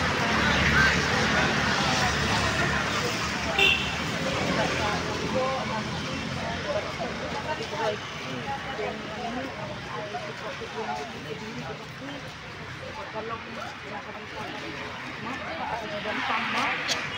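A crowd of people talks nearby.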